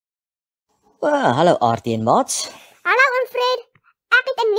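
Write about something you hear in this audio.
A high, playful robot voice speaks with animation.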